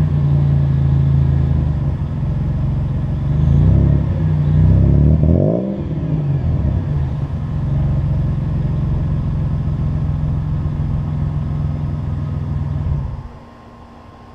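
A vehicle engine idles with a deep, steady exhaust rumble close by.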